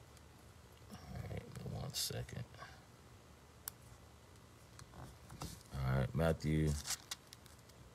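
A man speaks calmly and briefly, close to the microphone.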